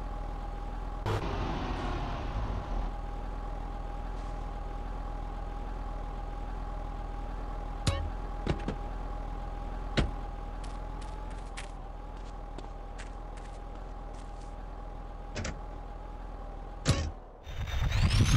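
A car engine idles with a steady hum.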